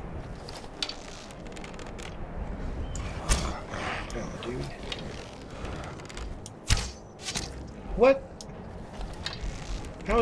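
A bowstring twangs as arrows are shot.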